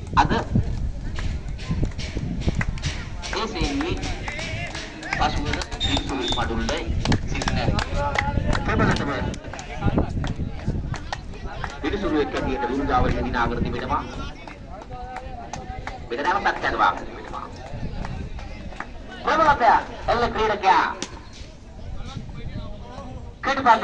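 Several men talk and call out outdoors, close by.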